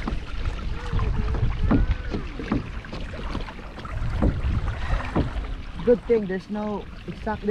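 Water splashes against a kayak's hull.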